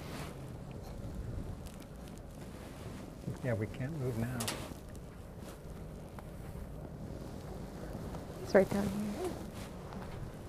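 A polar bear sniffs and snuffles up close.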